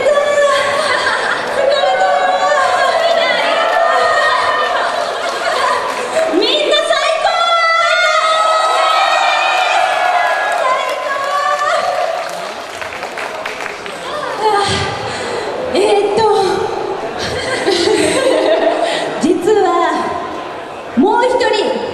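Young women sing together into microphones through loud speakers in a large echoing hall.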